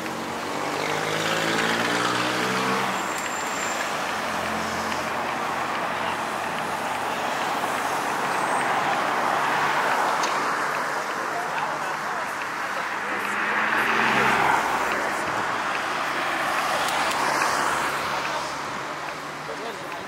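Car engines hum and tyres roll past on a city street.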